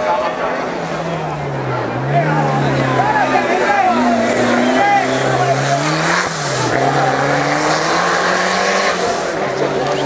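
A Ford Sierra rally car revs hard as it accelerates uphill through bends on tarmac.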